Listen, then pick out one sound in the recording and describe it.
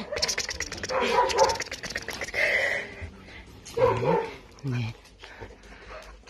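A hand rubs a dog's fur.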